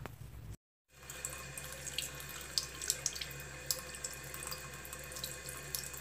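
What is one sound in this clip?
Water runs from a tap and splashes over a hand into a basin.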